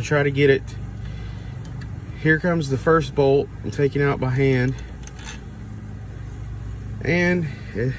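A metal bolt scrapes as it is unscrewed and pulled out.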